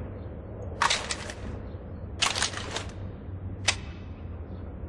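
A rifle's metal parts clatter and click as the rifle is handled.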